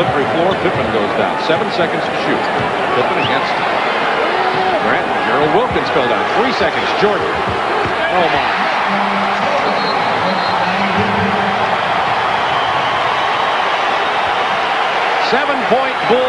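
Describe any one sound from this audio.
A large crowd cheers and roars loudly in an echoing arena.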